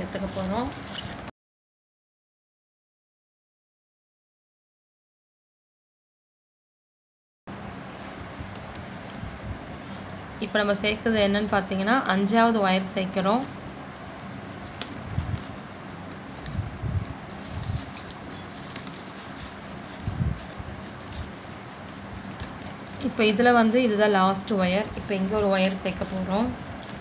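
Plastic strips rustle and crinkle as they are knotted.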